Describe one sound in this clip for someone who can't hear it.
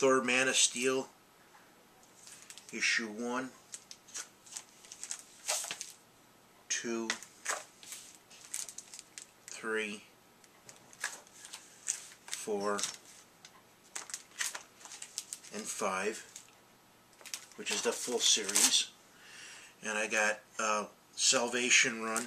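Plastic sleeves rustle and crinkle as they are handled.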